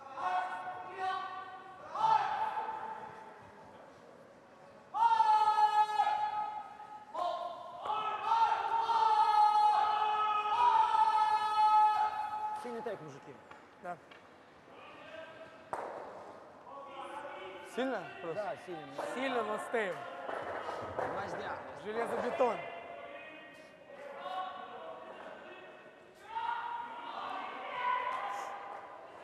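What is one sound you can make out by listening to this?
Men shout long, drawn-out calls across a large echoing hall.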